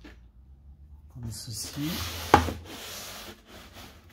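A plastic tool knocks down onto a hard table.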